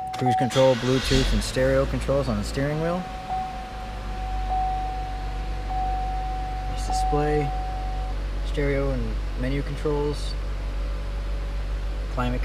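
A car engine starts and idles with a low hum.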